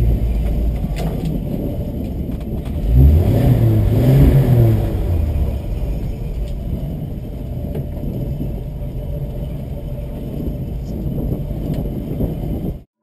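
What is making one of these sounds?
A vehicle engine rumbles low and steady while crawling over rock.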